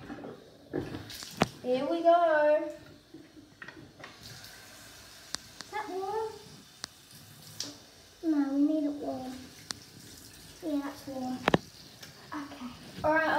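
Water runs from a tap into a bathtub.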